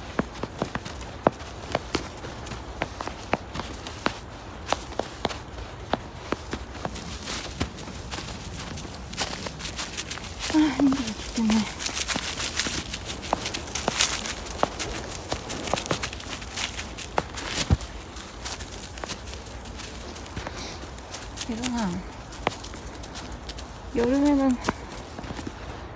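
A small dog's paws crunch softly through snow.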